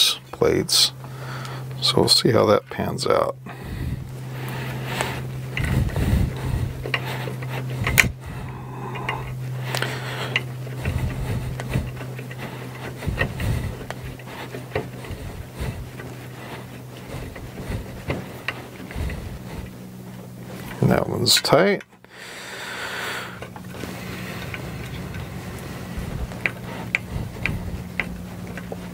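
Small metal parts click and tap against a metal frame.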